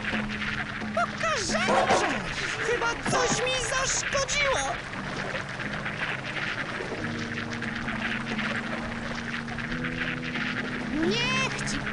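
Chirping game sound effects sweep up and down.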